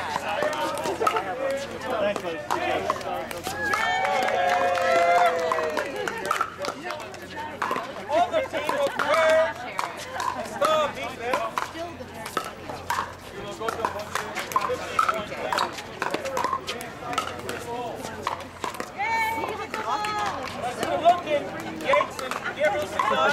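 A crowd of spectators chatters in the background outdoors.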